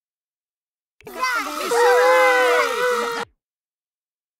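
A party horn blares loudly.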